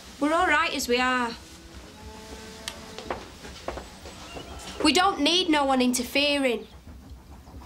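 A young woman speaks urgently nearby.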